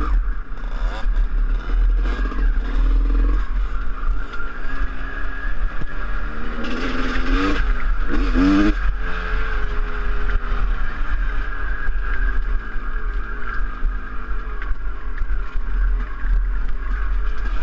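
A dirt bike engine revs and rumbles up close.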